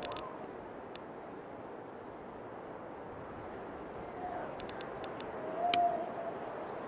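Menu buttons click several times.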